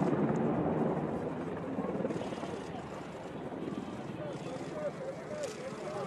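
A helicopter's rotor thumps as it flies overhead.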